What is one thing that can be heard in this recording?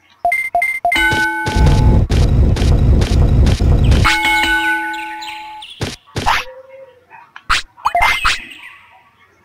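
Game menu sounds beep and chime.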